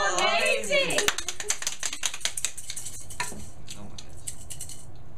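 A boy shakes a rattling maraca.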